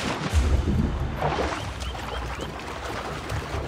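Water splashes with swimming strokes.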